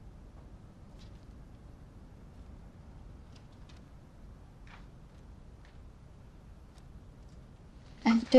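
Footsteps cross a carpeted floor at a calm pace.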